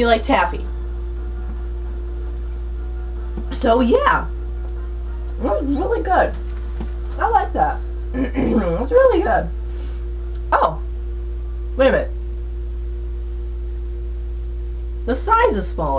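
A young person talks casually in short bursts, close to the microphone.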